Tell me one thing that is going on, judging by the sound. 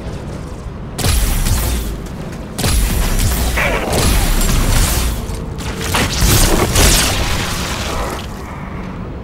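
A rapid-fire gun shoots in loud bursts.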